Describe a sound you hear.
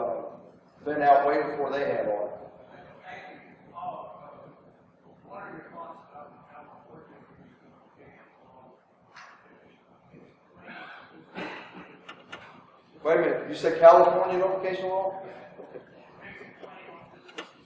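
A man speaks calmly into a microphone, heard through a loudspeaker in a large room.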